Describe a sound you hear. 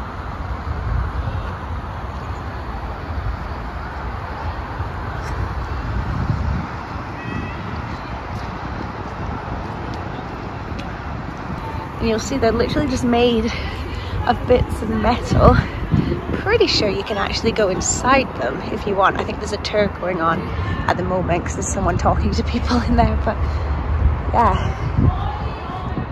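Wind blows across an open space and buffets the microphone.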